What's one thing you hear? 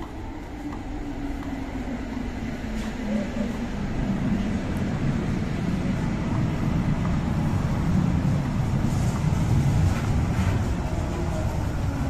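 A train rumbles into the station and grows louder.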